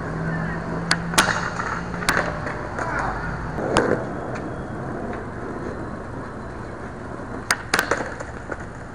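A skateboard snaps and clacks sharply on concrete.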